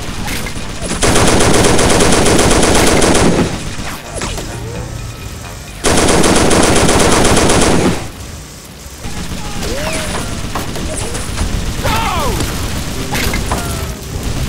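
Explosions boom and rumble against a building.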